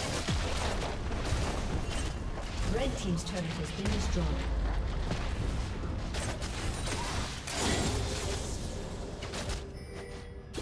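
Game spells crackle and blast during a fight.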